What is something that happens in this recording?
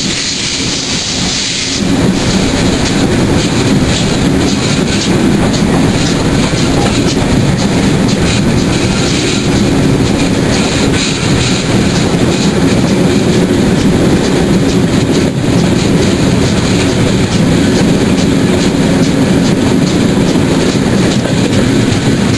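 A steam locomotive chugs loudly close by as the train moves.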